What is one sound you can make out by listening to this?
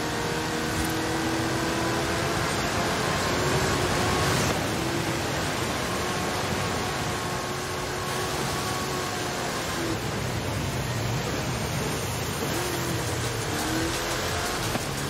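A racing engine roars at high speed.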